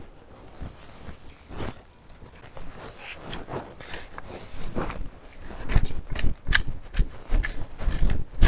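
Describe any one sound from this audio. A spade digs and scrapes into soil.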